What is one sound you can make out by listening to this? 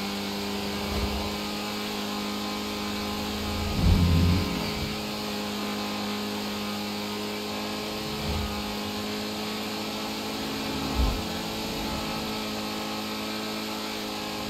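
A sports car engine hums steadily as the car drives along a road.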